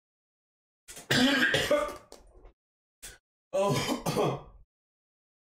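A man talks close by, in short bursts.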